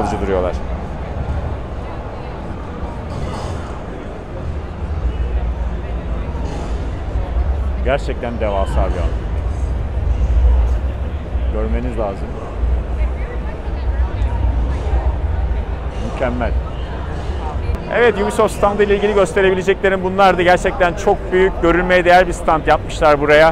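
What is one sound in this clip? A crowd murmurs and chatters in a large, echoing hall.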